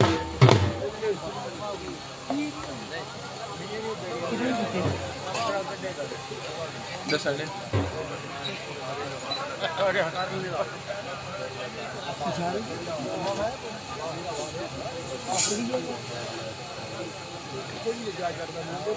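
A crowd of men talk and shout outdoors at a distance.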